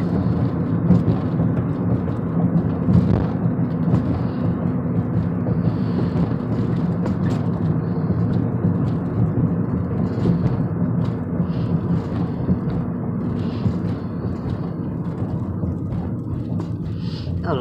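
A car engine hums steadily from inside the cabin while driving.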